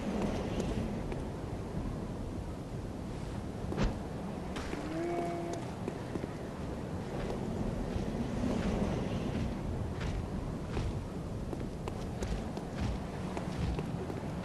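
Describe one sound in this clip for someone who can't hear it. Footsteps tread on cobblestones.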